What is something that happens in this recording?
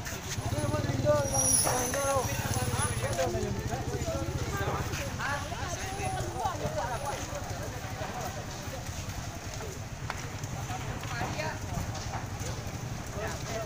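A large fire roars and crackles steadily.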